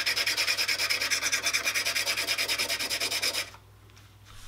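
Sandpaper rasps quickly back and forth.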